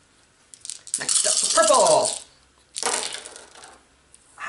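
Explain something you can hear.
Dice rattle and clatter into a box.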